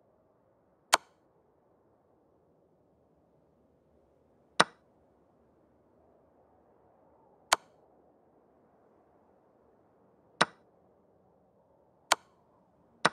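Short, sharp clicks sound now and then as chess pieces move.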